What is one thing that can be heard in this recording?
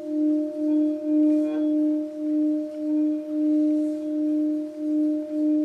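A singing bowl rings with a steady, pulsing hum as a mallet is rubbed around its rim.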